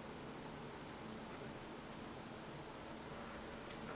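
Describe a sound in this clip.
A plastic tool scrapes softly across a soft sheet.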